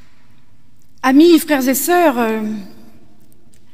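An elderly woman sings a short phrase into a microphone in a large echoing hall.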